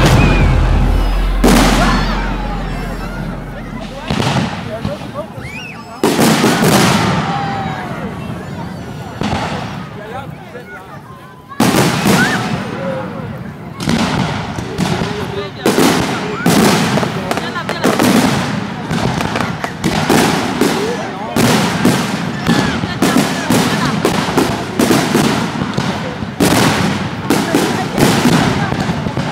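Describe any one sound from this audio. Fireworks burst with loud booms that echo away.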